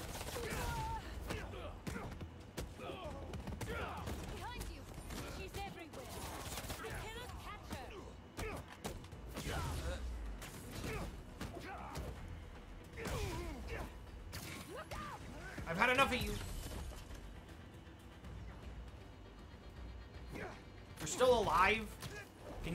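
Punches and blows land in a game fight.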